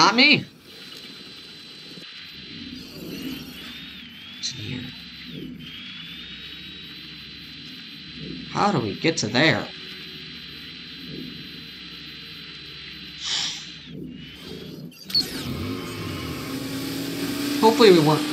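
A small electric motor whines as a toy car drives about.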